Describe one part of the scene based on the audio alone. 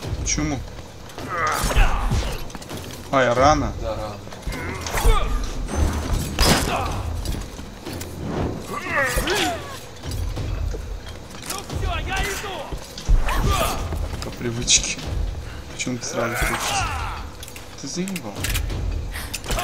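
Metal blades clash and strike in a fight.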